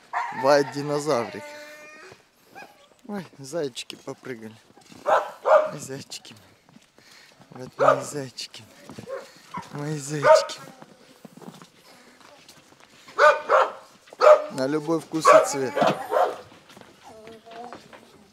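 Puppies patter and scamper across crunchy snow and wooden boards.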